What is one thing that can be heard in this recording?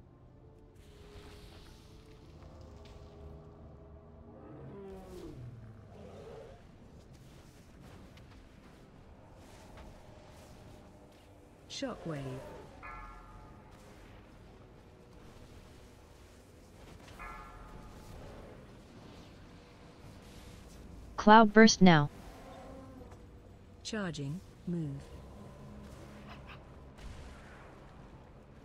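Magic spells crackle and burst in a fantasy battle.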